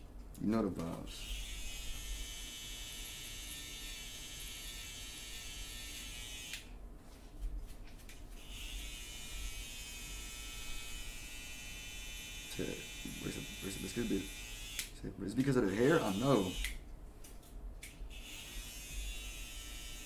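Electric hair clippers buzz steadily, stopping now and then.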